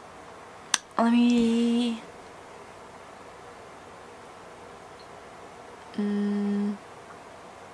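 A young woman makes a high sung tone.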